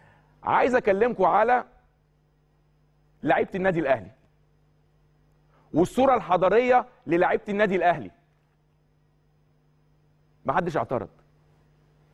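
A man speaks clearly into a microphone in short, animated bursts with pauses between.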